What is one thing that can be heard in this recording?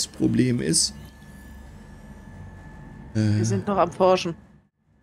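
A middle-aged man speaks casually into a close microphone.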